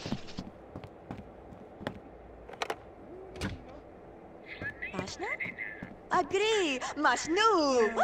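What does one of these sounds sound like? Footsteps tap lightly on a wooden floor.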